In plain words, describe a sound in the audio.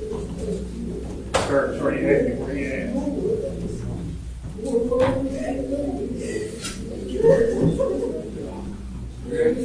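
A man speaks calmly to a gathering.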